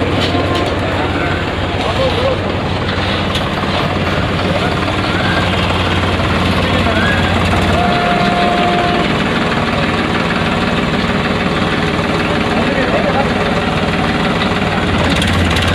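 A crowd of men and women murmurs and chatters nearby outdoors.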